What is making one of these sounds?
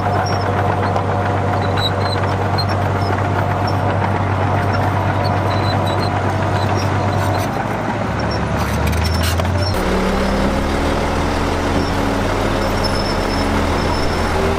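Bulldozer tracks clank and squeak as the machine pushes soil.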